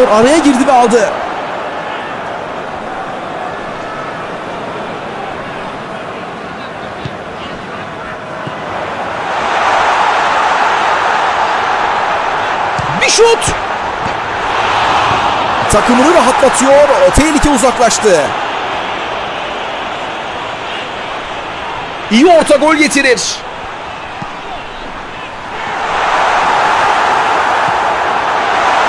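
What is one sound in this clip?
A large crowd cheers and roars, swelling louder at times.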